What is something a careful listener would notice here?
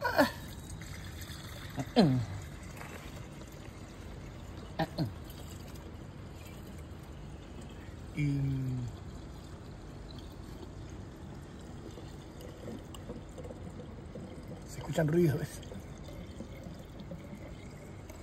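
Water pours and gurgles from a plastic bottle.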